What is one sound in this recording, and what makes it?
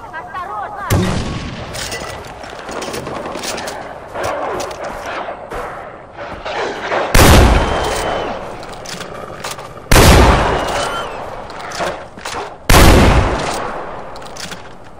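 A shotgun fires loud blasts that echo.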